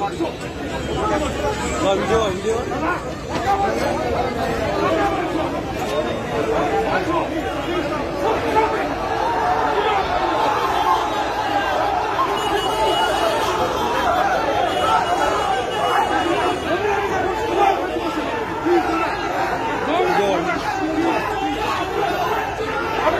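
A crowd of men talk and shout over one another close by.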